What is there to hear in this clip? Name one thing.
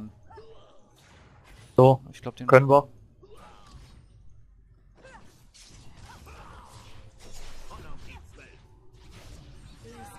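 Magic blasts and sword clashes ring out in a fast video game battle.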